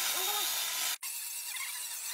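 A power sander whirs against wood.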